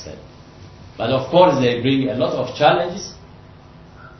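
A man speaks briefly to a room, heard through a microphone.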